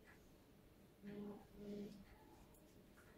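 A middle-aged woman speaks calmly nearby.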